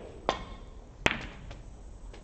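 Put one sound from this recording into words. A cue sharply strikes a ball with a single click.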